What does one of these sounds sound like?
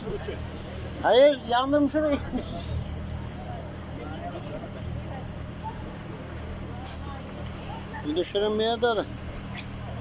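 A man calls out loudly from the water nearby.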